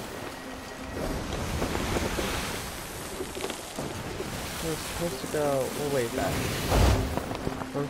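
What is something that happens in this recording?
Footsteps thud on a wooden deck.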